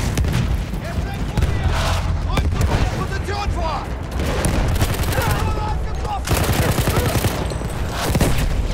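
Explosions boom and rumble all around.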